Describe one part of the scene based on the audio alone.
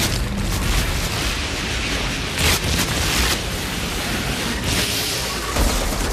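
A blade swooshes through the air in heavy swings.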